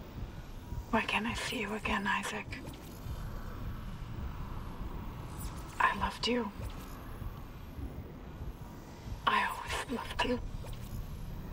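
A woman speaks softly through a small speaker, in short bursts.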